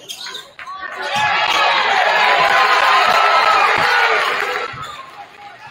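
A large crowd cheers loudly in an echoing gym.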